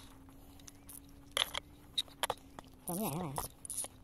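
A fishing reel clicks as its handle is wound.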